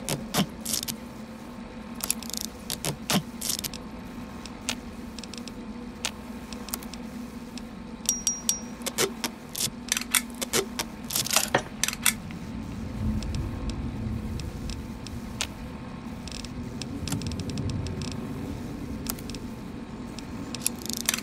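Short electronic clicks and ticks come from a game menu as items are scrolled through.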